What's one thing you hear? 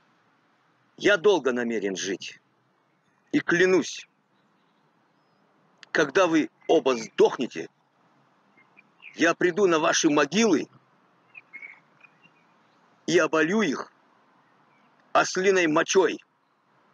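An elderly man speaks calmly in short phrases, heard through an online call.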